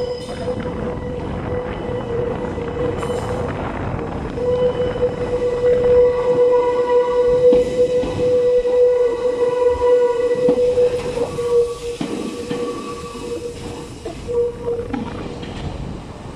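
Train brakes squeal with a long, steady whine.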